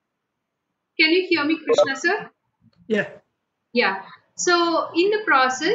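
A young woman speaks calmly and close to the microphone.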